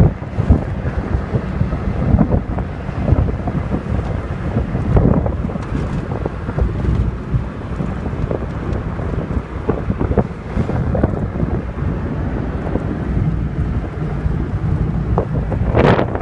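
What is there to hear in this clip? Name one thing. Wind and road noise rush past an open car window.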